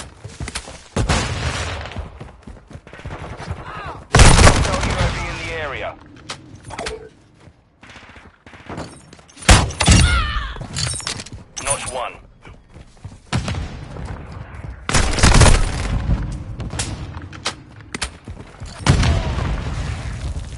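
Shotgun blasts boom loudly, one at a time.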